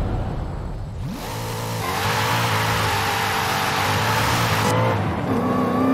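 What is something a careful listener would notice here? Tyres screech loudly on asphalt.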